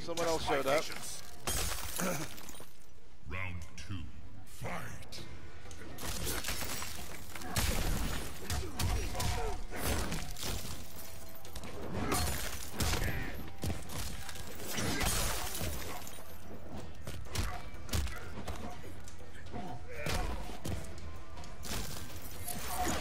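Ice crackles and shatters.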